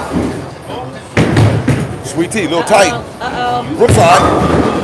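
A bowling ball thuds onto a lane and rolls with a low rumble.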